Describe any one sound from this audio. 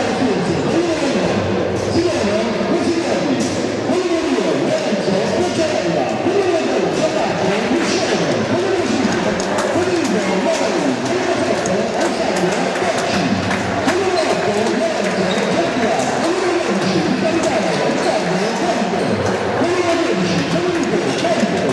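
A crowd of young men chatter and call out in an echoing hall.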